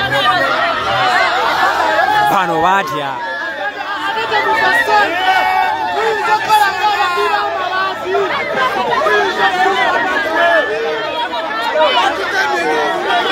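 A crowd of men and women talks and shouts all around, close by.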